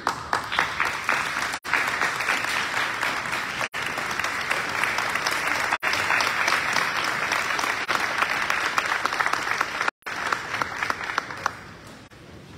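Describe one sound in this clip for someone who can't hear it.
A large crowd applauds loudly in a big echoing hall.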